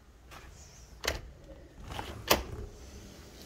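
A door opens with a click and a creak.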